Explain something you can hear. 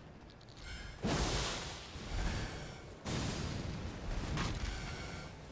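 Fighting clashes and thuds play out in a game.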